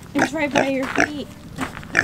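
A pig crunches on an apple.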